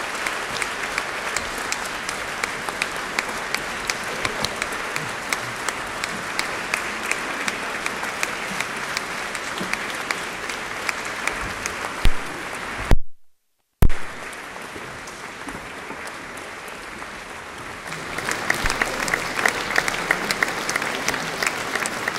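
A crowd murmurs and shuffles in a large echoing hall.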